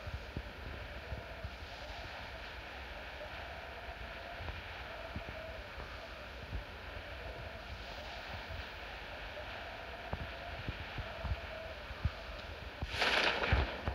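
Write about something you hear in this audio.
Wind rushes steadily past a falling skydiver.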